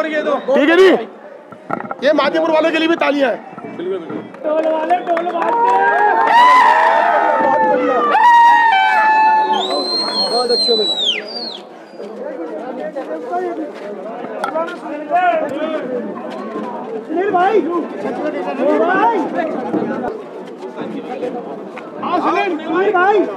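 A crowd of men talks and cheers around.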